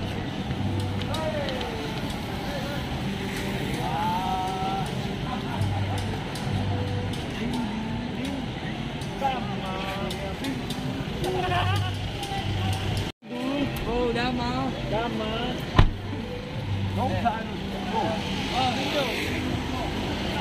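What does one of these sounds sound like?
Men talk nearby in lively voices.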